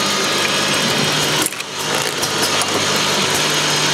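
Small plastic bottles rattle and clink along a conveyor.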